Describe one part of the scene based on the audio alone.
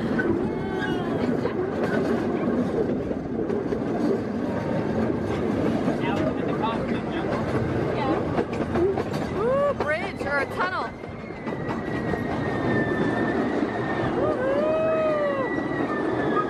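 A small open train rumbles and rattles along steadily.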